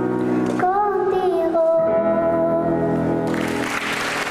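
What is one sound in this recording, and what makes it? A young girl sings into a microphone.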